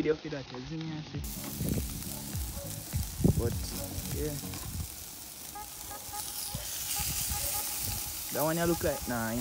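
Metal tongs clink against a grill.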